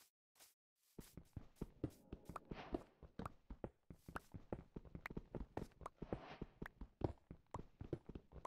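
A pickaxe chips rapidly at stone.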